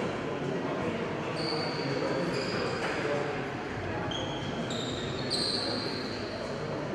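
A crowd of children chatters in a large echoing hall.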